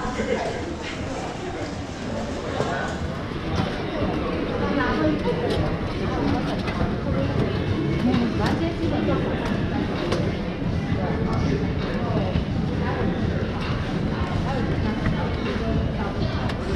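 A crowd of people chatters in a busy echoing hall.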